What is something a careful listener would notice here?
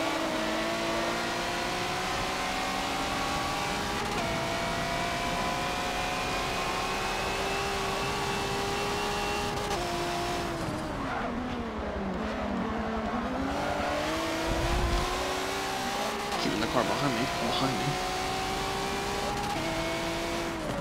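A racing car engine roars, climbing in pitch and dropping with each gear change.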